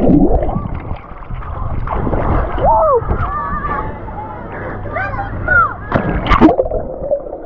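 Water splashes and sloshes around a swimmer close by.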